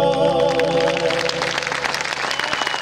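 A woman sings a held note through a microphone.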